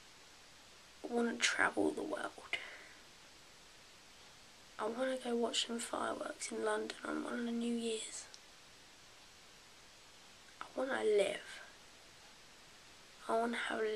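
A young woman talks calmly and close up, in short bursts with pauses.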